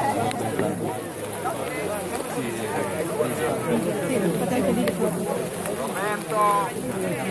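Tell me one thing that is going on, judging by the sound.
A large crowd chatters nearby.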